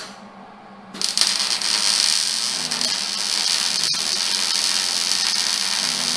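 An arc welder crackles and hisses steadily.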